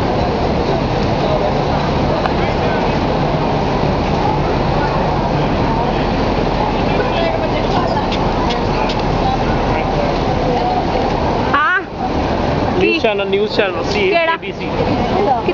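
A crowd of people chatters on a busy street.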